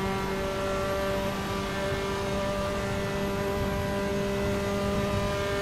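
A racing car engine drones at a steady high pitch.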